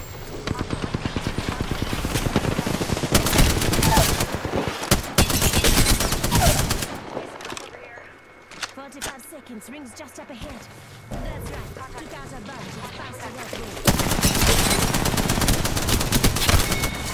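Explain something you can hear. A rapid-fire gun shoots in fast, loud bursts.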